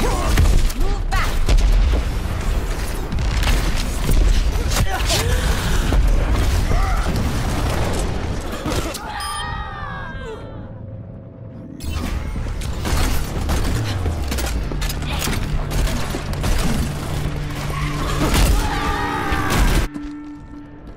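Gunfire and explosions crack and boom in a game.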